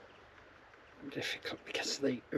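An elderly man speaks close by.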